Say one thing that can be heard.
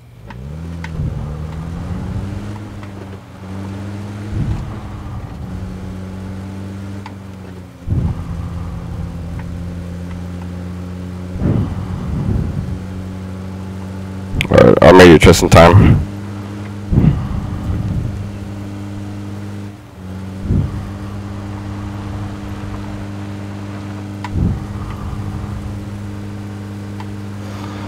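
An off-road jeep engine drones as it drives over rough ground.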